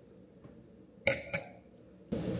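A glass is set down on a stone counter with a clink.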